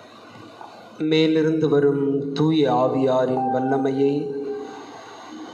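A young man sings slowly through a microphone.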